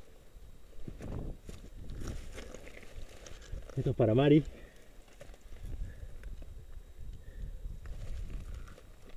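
Footsteps crunch on dry grass and loose stones.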